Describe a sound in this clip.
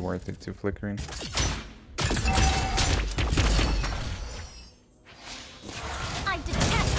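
Spell effects whoosh and crackle.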